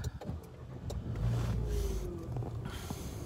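A car engine cranks and starts.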